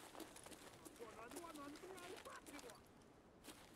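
A man speaks quietly into a close microphone.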